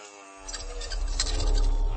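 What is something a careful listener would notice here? Footsteps scuff on a hard floor.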